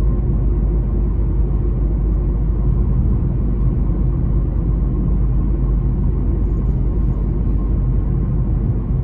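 Tyres roar low on the road.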